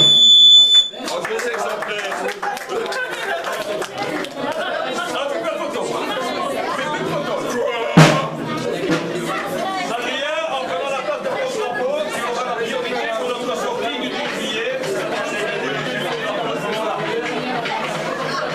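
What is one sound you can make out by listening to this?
A crowd of children and adults chatter in an echoing room.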